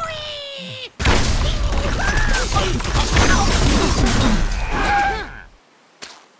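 Wooden and glass blocks crash and shatter as a tower collapses.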